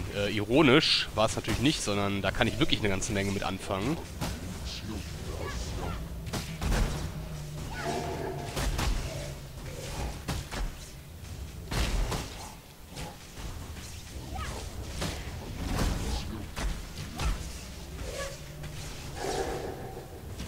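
Crackling electric blasts zap and burst again and again.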